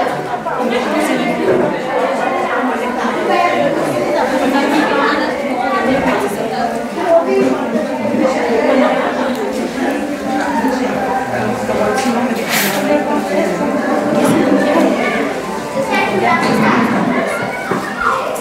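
Dishes and bowls clink.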